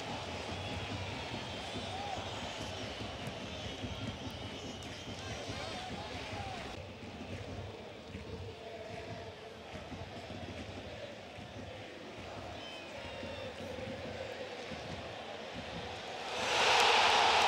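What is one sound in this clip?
A stadium crowd murmurs and chants steadily in the distance.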